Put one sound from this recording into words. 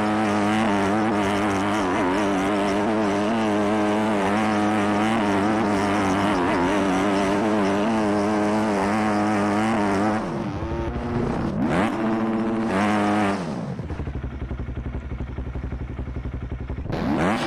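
A motorcycle engine roars at high revs, then drops to a low idle and revs up again.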